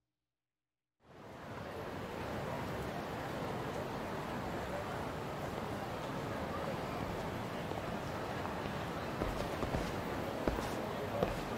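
A busy city street hums with a steady murmur of crowd noise.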